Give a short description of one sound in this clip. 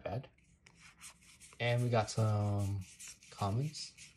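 Cards slide and shuffle in someone's hands.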